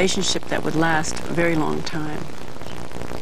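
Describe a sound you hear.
A middle-aged woman speaks calmly into a microphone close by.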